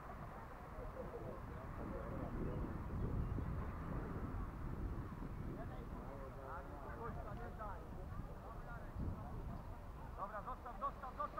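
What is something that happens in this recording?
Wind rumbles across an open field.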